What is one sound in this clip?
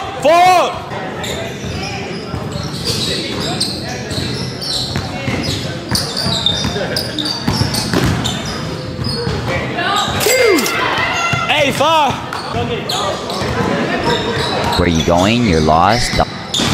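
Sneakers squeak sharply on the court floor.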